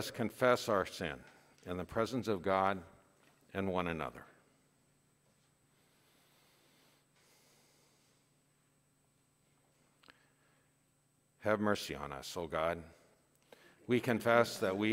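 A man reads aloud slowly through a microphone in an echoing hall, pausing between phrases.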